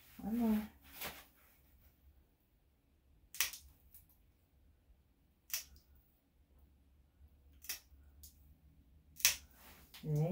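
Nail clippers snip sharply, one cut every few seconds.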